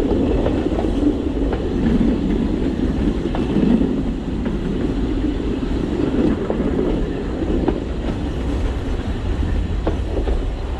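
Train wheels click and clack over rail joints.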